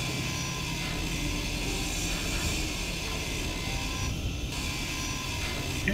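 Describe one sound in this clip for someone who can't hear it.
A cutting tool grinds and hisses steadily.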